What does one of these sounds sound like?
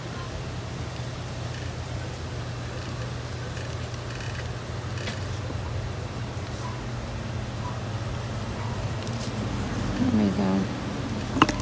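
Hands press and rustle soil and succulent leaves close by.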